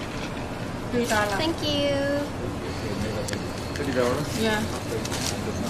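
A young woman speaks close by in a lively voice.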